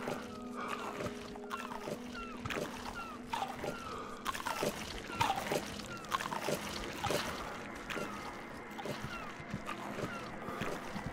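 Footsteps clank steadily on metal grating and wooden planks.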